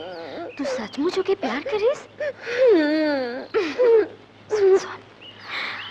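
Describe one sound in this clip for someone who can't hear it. A young woman sings with a wavering, melodic voice.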